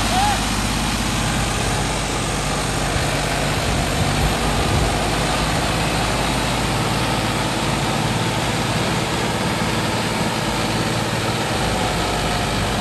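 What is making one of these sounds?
A tractor's diesel engine rumbles steadily close by.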